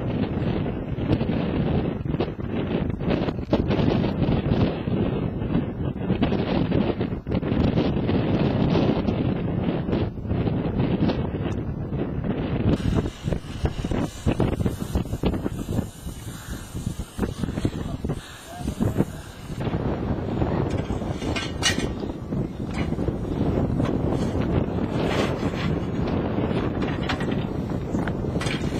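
Wind buffets loudly across the microphone outdoors.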